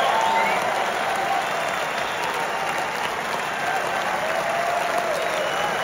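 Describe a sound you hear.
Women in the crowd shriek with excitement close by.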